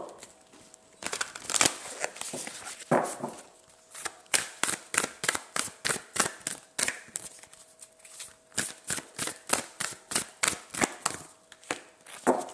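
Cards are shuffled with quick riffling flicks.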